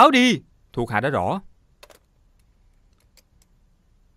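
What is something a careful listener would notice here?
A telephone receiver clicks down onto its cradle.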